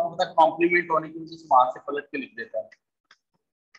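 A man speaks in a calm, explaining voice.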